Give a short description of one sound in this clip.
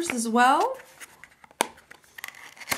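A cardboard box scrapes and taps as hands handle it.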